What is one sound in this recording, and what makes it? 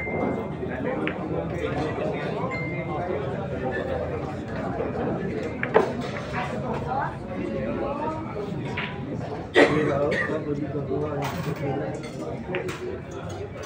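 Billiard balls clack sharply against each other.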